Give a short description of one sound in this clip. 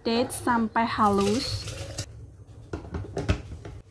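Fruit tumbles into a glass jug.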